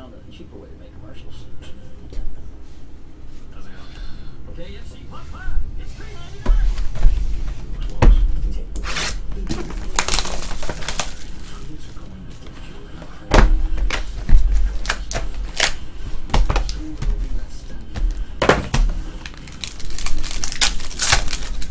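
Cardboard and plastic wrapping rustle and crinkle as hands handle them.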